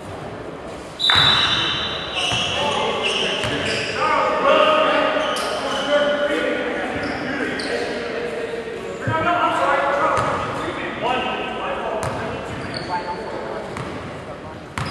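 Spectators shout and cheer loudly, echoing around a large hall.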